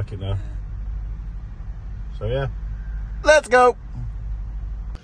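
A man speaks briefly in short bursts, close by.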